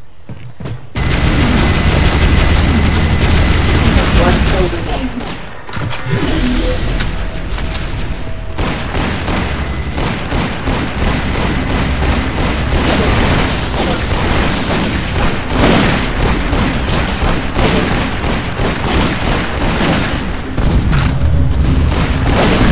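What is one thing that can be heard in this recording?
Gunfire blasts rapidly in bursts.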